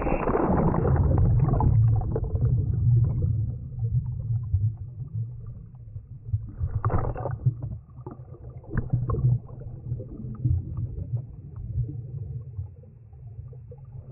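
Water gurgles and rumbles, muffled as if heard underwater.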